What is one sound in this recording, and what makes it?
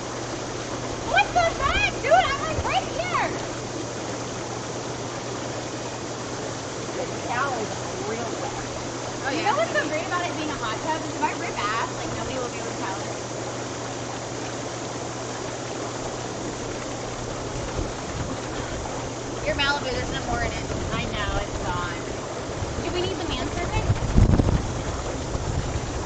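Water bubbles and churns steadily in a hot tub.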